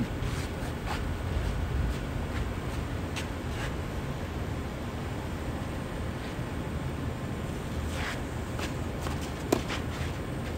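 A tennis ball is struck by a racket far off.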